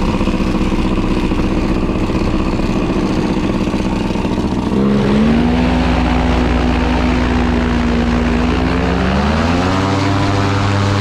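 A paramotor engine drones steadily close by, revving higher twice.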